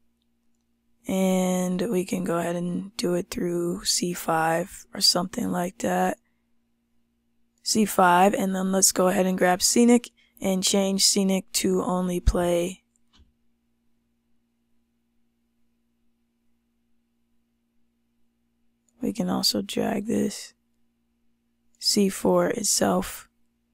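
A young woman talks calmly and closely into a microphone.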